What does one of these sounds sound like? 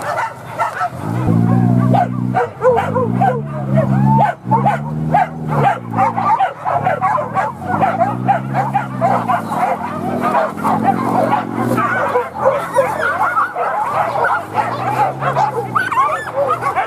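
A man shouts calls to the dogs from nearby.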